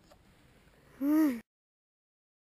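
A young boy shouts briefly close by.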